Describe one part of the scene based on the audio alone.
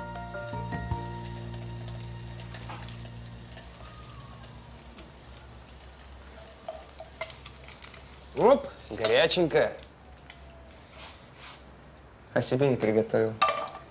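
A spatula scrapes a frying pan.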